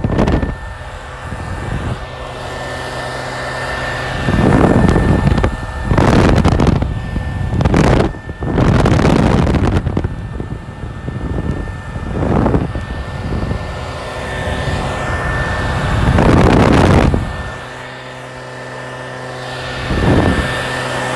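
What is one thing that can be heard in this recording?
Air rushes past the microphone in repeated whooshes as it swings back and forth.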